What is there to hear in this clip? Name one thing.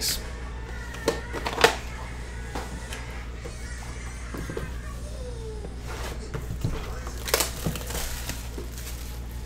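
A cardboard box is handled and set down with soft knocks.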